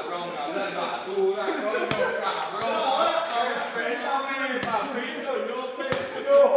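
A crowd of men and women talk and shout nearby all around.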